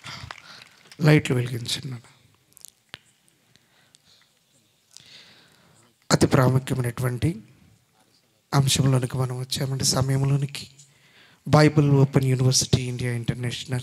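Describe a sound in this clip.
A man speaks into a microphone with animation, heard through loudspeakers in an echoing hall.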